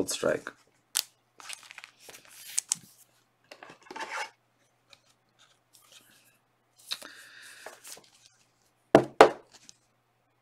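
A plastic card sleeve rustles and clicks as it is handled.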